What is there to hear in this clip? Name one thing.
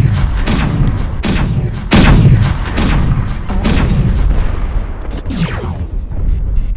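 Heavy weapon blasts boom in quick bursts.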